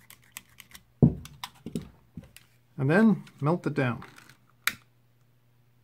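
A lighter clicks and sparks.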